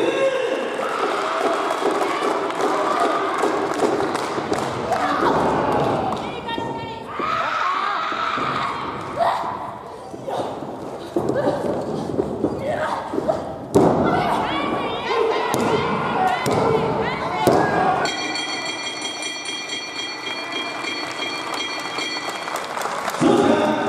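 A crowd in a large hall chatters and cheers.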